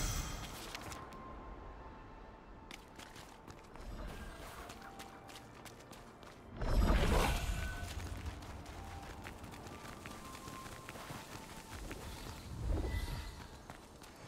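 Footsteps run over cobblestones.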